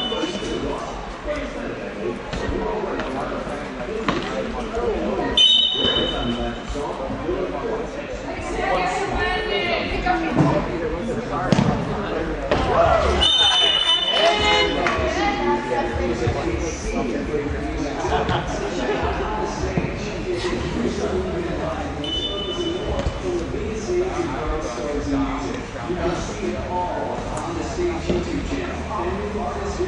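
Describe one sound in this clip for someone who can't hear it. Adult spectators chatter and cheer in a large echoing hall.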